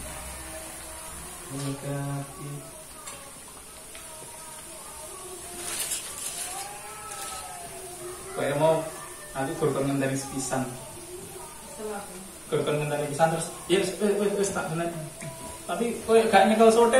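Oil sizzles steadily in a pan.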